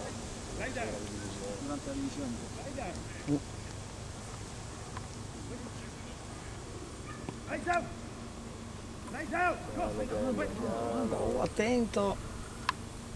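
A man calls out commands to a dog outdoors.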